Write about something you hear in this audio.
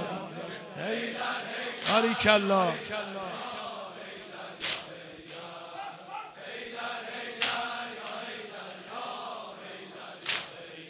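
A large crowd of men chants along in unison.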